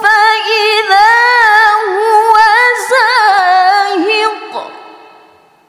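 A young woman chants melodically into a microphone, echoing in a large hall.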